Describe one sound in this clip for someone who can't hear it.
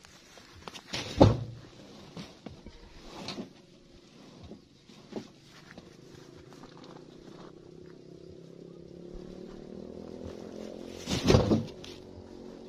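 Heavy sacks thump onto a truck bed.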